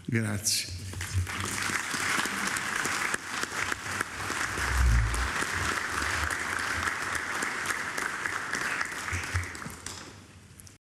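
A crowd applauds steadily in a large room.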